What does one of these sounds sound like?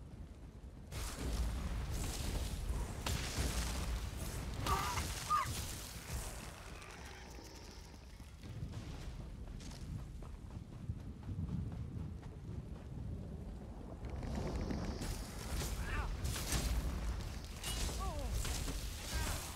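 Weapons clash and strike during a game fight.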